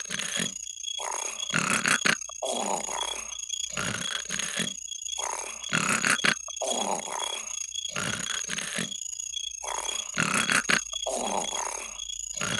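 A cartoon creature snores loudly and rhythmically.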